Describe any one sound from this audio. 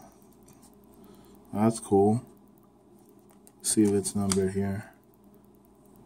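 Trading cards slide and rustle against each other in hands.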